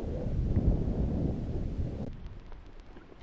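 Wind blusters across open ground.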